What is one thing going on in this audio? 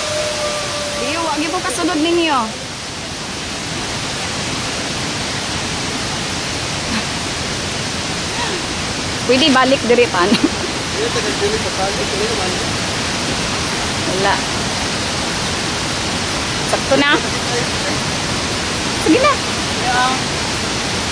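A man calls out nearby.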